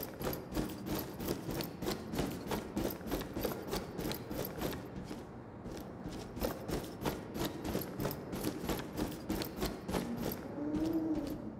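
Footsteps clang on metal floors and stairs.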